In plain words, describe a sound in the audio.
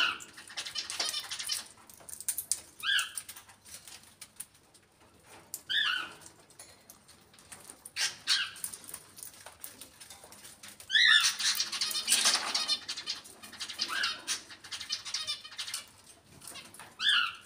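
A parrot squawks and chirps loudly, close by.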